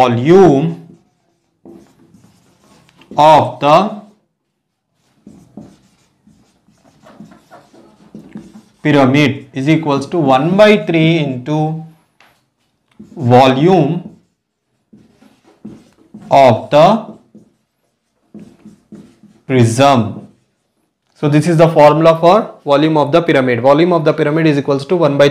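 A man explains calmly and clearly, close by.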